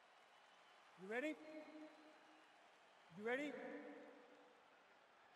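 A man speaks loudly in a large echoing arena.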